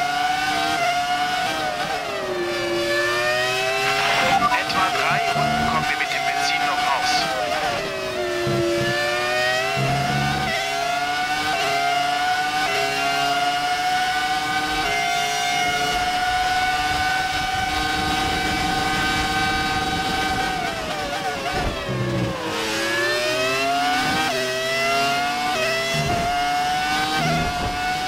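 A racing car engine screams close by, its pitch rising through the gears and dropping under braking.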